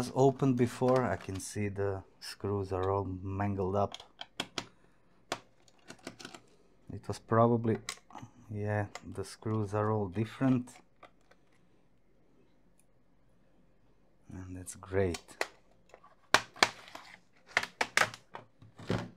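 A screwdriver clicks and taps against small screws.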